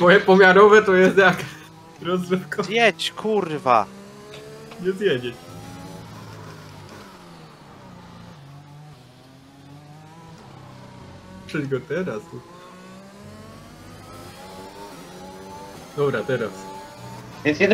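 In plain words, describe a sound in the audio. A racing car engine whines, rising in pitch through each gear and dropping as it shifts.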